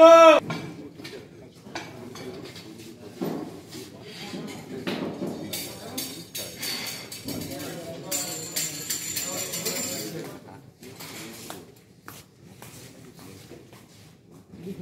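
Men talk casually nearby in a large echoing room.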